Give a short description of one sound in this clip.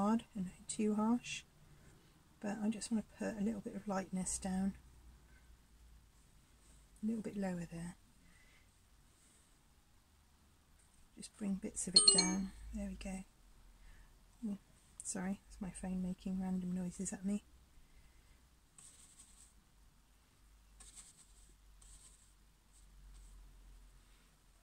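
A paintbrush dabs and strokes softly across a board.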